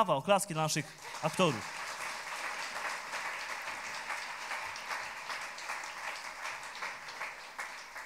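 An audience claps steadily.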